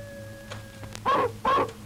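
A dog barks sharply.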